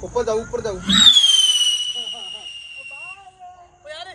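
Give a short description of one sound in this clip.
A firework rocket bursts with a loud bang and a falling whistle.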